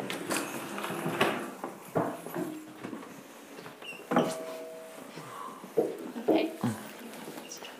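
Footsteps thump across a wooden stage.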